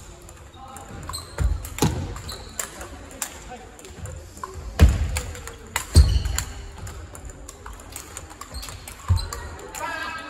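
A ping-pong ball clicks back and forth off paddles and a table in a large echoing hall.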